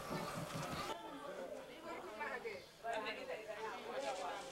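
Several women talk and call out nearby outdoors.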